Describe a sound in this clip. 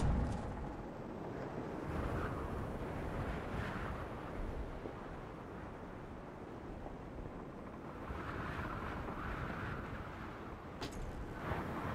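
Wind rushes steadily past, high in the open air.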